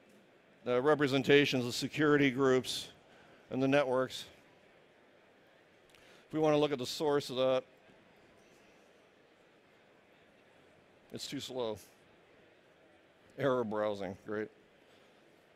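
A man speaks through a microphone in short, calm phrases, with pauses.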